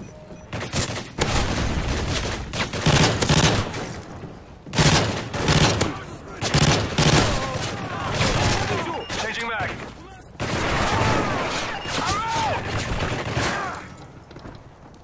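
Rifle shots crack out in quick bursts.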